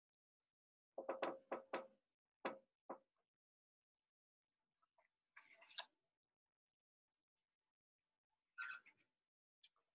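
Paper rustles and crinkles in a jar.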